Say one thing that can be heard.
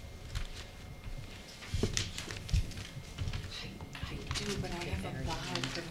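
Footsteps cross a hard floor.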